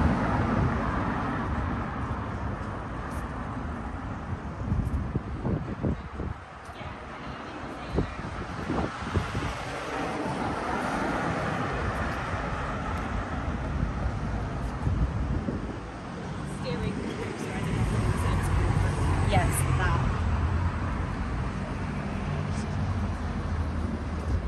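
Traffic hums steadily along a city street outdoors.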